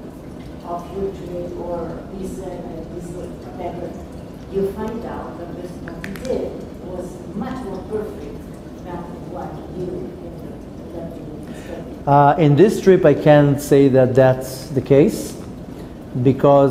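A middle-aged man speaks calmly and warmly into a close microphone.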